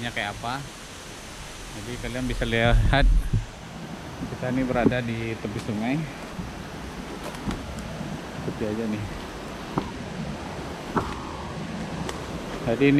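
A stream flows and splashes over rocks.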